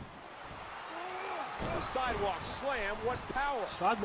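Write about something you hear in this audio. A body slams heavily onto a wrestling mat with a thud.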